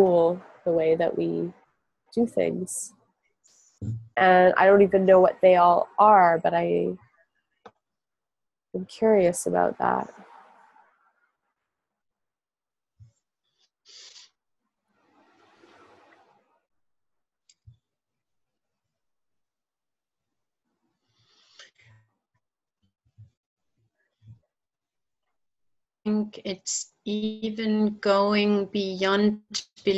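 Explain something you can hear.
A woman speaks calmly over an online call, with long pauses.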